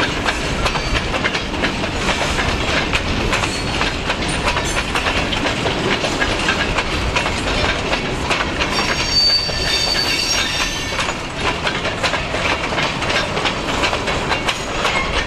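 Freight cars rumble and clatter along the rails close by.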